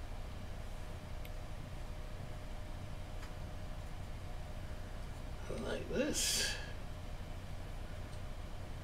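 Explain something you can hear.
A tool scrapes softly against a carved figure.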